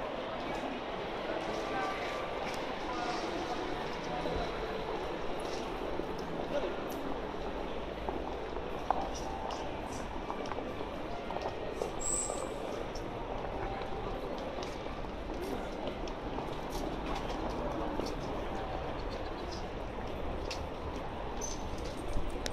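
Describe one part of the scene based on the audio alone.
A busy crowd murmurs and chatters all around, outdoors.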